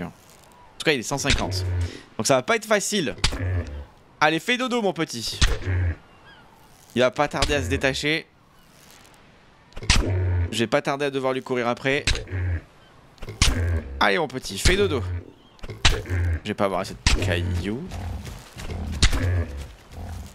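A pickaxe strikes a large creature with dull thuds.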